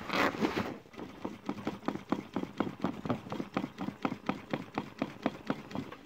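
A sewing machine stitches with a rapid, even clatter.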